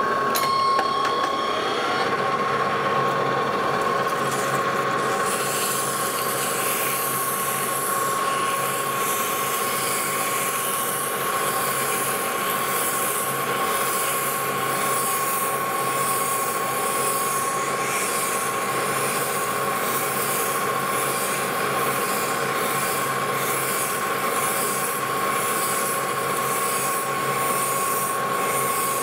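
A metal lathe hums steadily as it spins.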